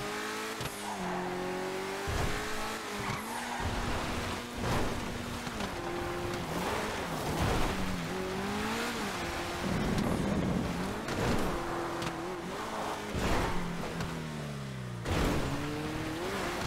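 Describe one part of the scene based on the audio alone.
Gravel crunches under a car's tyres.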